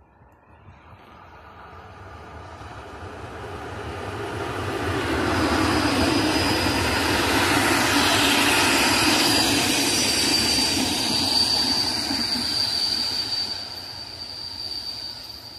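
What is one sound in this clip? An electric locomotive hauling passenger coaches approaches and rumbles past on the rails.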